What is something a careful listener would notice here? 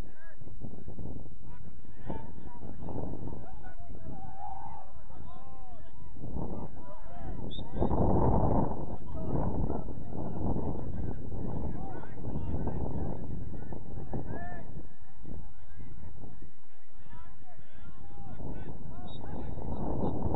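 Young men call out to each other across the field in the distance.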